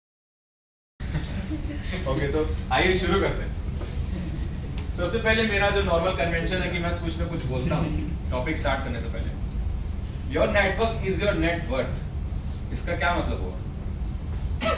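A young man speaks calmly to an audience in a room with a slight echo.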